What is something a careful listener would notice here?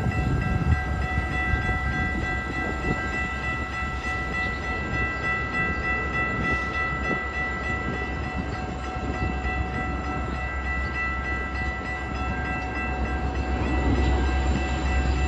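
Metal squeals in steady high tones as the train passes.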